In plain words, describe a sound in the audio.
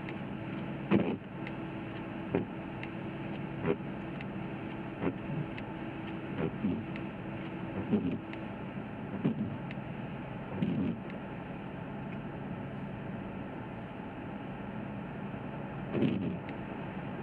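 Windscreen wipers thump as they sweep across the glass.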